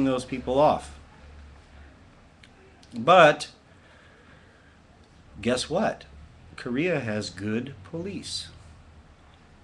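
A young man speaks calmly and close up, in short bursts with pauses.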